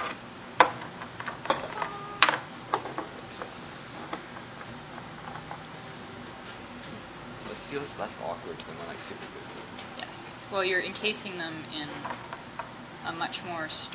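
Small glass bottles clink and tap against a hard table.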